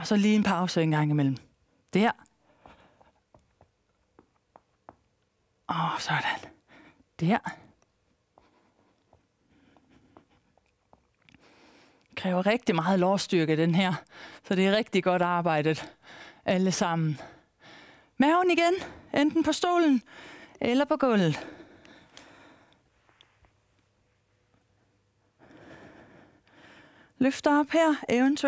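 A woman speaks calmly and clearly into a microphone, giving instructions.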